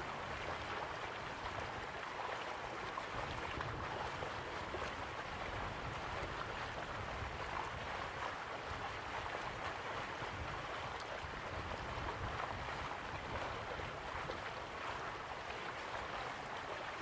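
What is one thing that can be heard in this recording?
Waterfalls rush and splash steadily in the distance.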